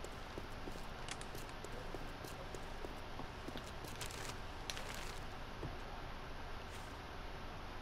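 Footsteps crunch over dry ground and brush through twigs.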